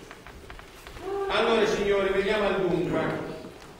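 A man speaks loudly and theatrically in an echoing hall, heard from a distance.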